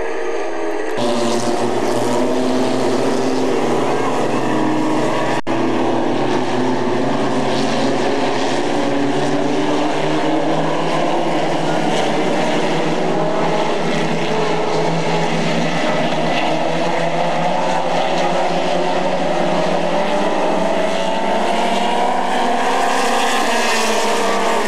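Race car engines roar loudly as cars speed around a track.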